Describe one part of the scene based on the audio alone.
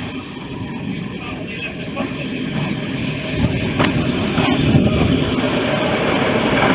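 A diesel train rumbles past close by, growing louder.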